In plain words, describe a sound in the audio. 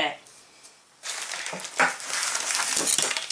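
A plastic bottle crinkles as a hand handles it.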